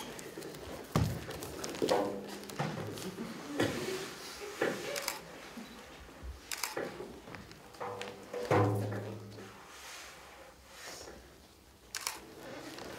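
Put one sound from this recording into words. Bare feet thump and slap on a stage floor.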